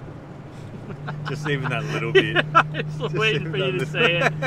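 A young man talks and laughs close by.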